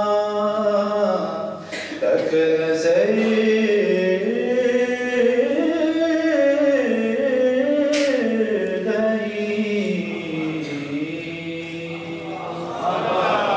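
A man chants a long melodic recitation through a microphone.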